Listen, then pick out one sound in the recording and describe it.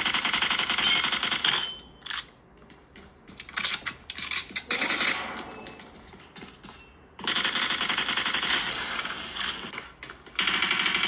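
Gunfire plays from a phone's small speaker.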